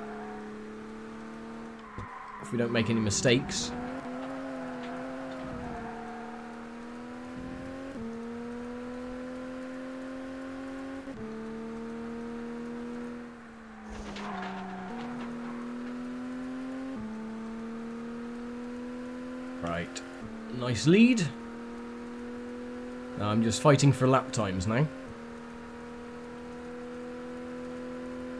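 A racing car engine drones steadily, dropping in pitch with each gear change.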